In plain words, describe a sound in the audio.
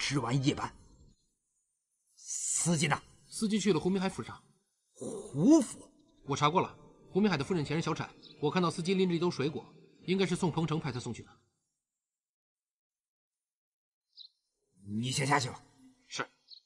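A man speaks in a firm voice nearby.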